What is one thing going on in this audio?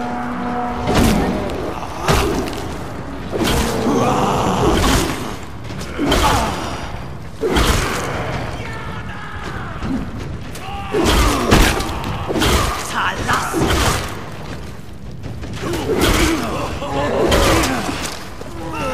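Heavy blows thud and smack in a fight.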